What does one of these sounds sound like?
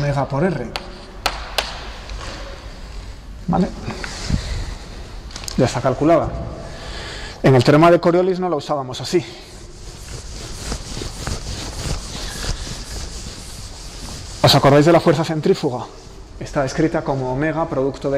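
A man lectures calmly in a room with some echo.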